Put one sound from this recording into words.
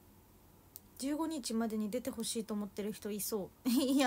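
A young woman speaks close to a microphone, calmly and softly.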